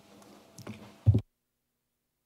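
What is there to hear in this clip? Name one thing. A microphone button clicks with a thump.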